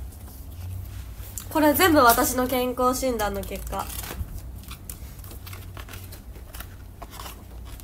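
A cardboard box rustles as it is handled.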